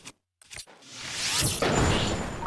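A fiery explosion roars loudly.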